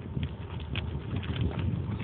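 Footsteps of a runner patter on gravel.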